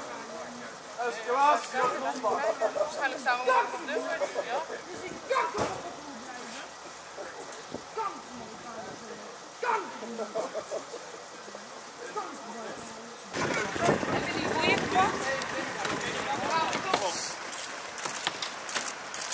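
A man shouts and speaks with agitation nearby.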